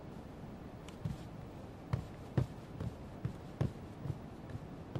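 Footsteps thud slowly on a hard floor, moving away.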